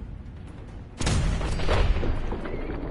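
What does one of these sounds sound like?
A gun fires a loud blast.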